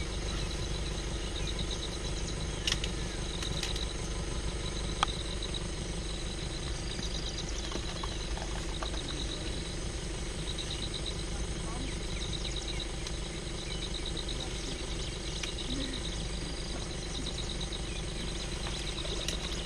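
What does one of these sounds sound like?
A vehicle engine idles close by with a low, steady rumble.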